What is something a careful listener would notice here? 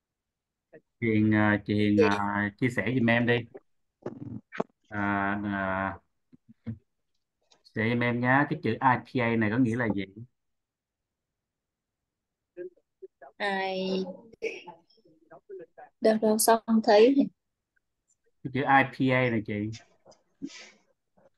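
A woman speaks slowly and clearly over an online call, with pauses.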